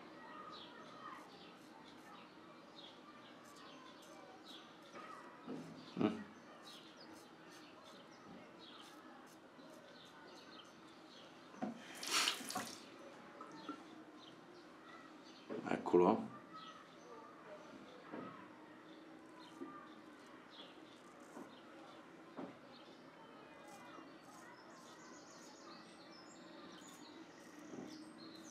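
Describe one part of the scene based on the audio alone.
A razor blade scrapes softly across lathered stubble.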